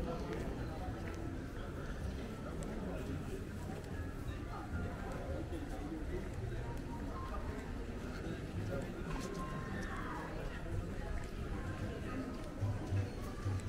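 Men and women talk in a low murmur nearby, outdoors.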